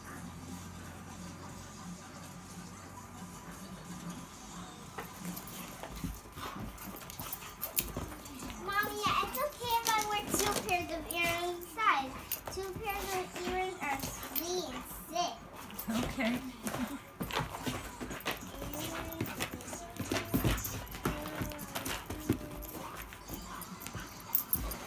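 Paws scuffle and thump on a carpeted floor.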